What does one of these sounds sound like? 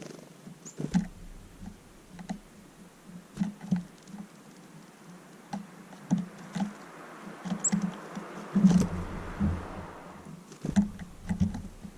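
A small bird pecks and taps at seeds close by.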